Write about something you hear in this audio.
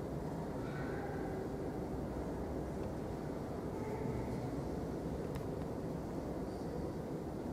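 A man chants softly at a distance in a large echoing hall.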